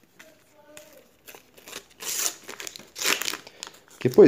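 A paper sticker packet crinkles and tears open.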